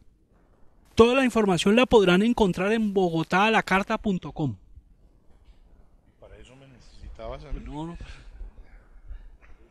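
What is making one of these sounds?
An older man speaks with animation into a microphone, close by.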